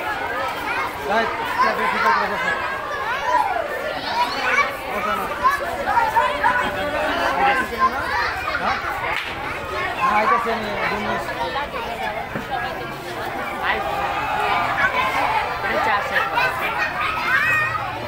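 Many voices murmur in a room.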